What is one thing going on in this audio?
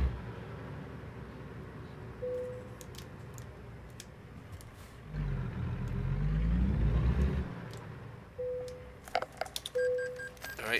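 A truck engine hums steadily, then rumbles louder and drops in pitch.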